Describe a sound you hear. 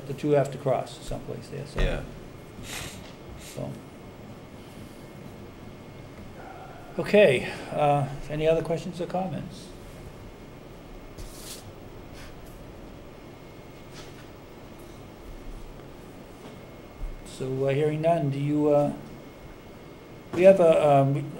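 Men speak calmly through microphones, in turns, with pauses between.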